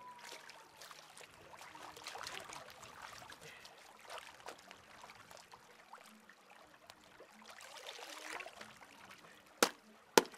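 A stream ripples and trickles over stones.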